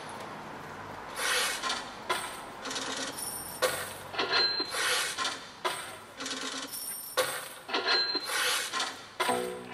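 A young woman speaks clearly outdoors, heard through a loudspeaker.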